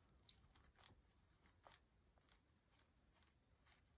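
A tissue rubs and dabs on paper.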